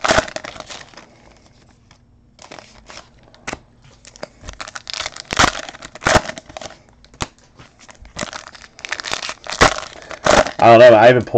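Foil wrappers crinkle and tear close by.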